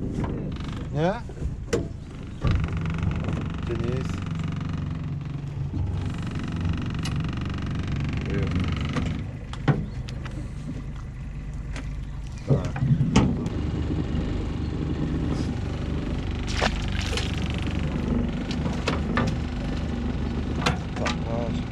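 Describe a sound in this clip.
A boat engine idles with a steady low hum.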